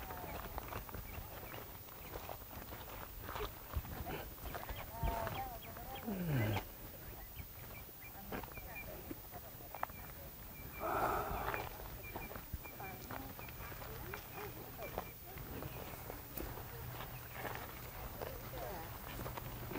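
People chatter quietly in the distance outdoors.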